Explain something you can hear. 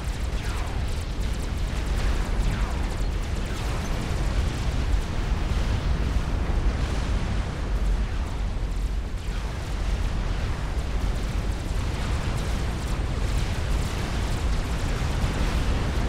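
Energy weapons fire with sharp zapping sounds.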